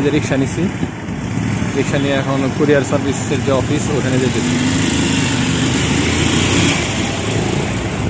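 A bus engine rumbles as it passes close by.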